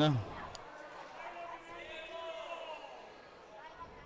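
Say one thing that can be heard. A stick strikes a ball on a hard floor.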